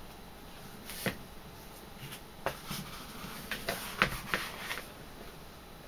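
Stiff leather rustles and flaps as it is handled.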